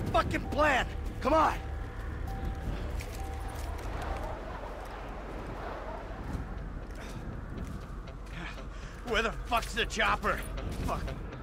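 A man shouts with alarm.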